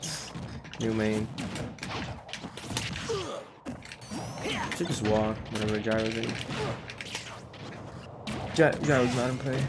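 Game hits and whooshes crack and swish in quick bursts.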